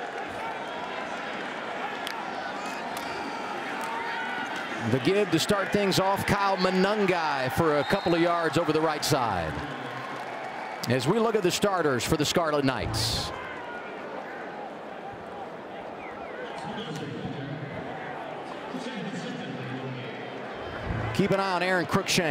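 A large crowd roars and cheers in an open stadium.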